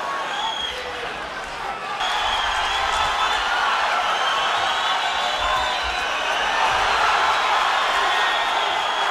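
A large crowd roars in a big echoing arena.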